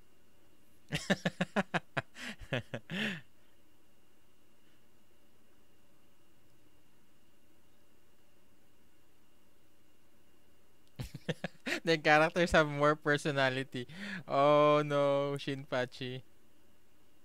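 A young man laughs heartily close to a microphone.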